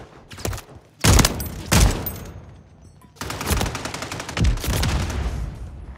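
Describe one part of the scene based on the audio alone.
Rapid rifle gunfire rattles loudly in bursts.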